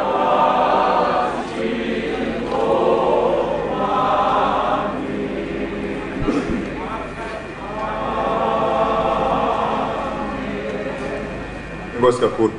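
A large choir sings together.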